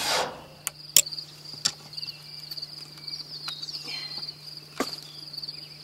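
A hatchet chops into wood with sharp knocks.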